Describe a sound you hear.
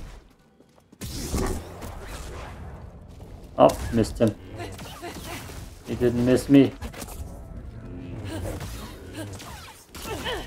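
A lightsaber hums and swishes through the air.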